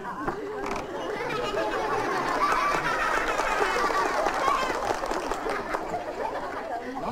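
A group of young men and women sings together.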